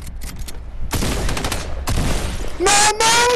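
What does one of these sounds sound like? Gunshots ring out in quick, sharp bursts.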